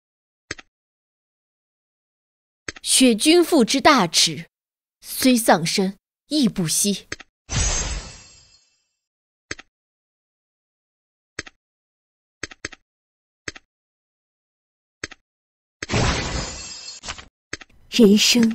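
Short menu clicks tick now and then.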